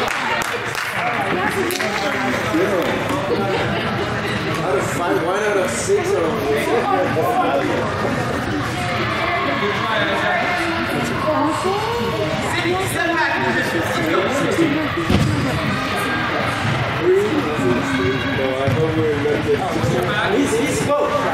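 Young players shout to each other across a large echoing indoor hall.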